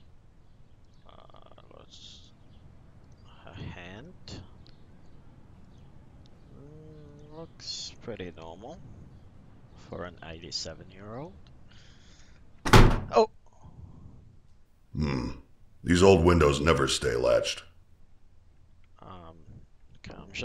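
A young man talks animatedly into a close microphone, with loud outbursts.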